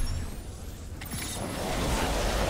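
An electric blast crackles and booms.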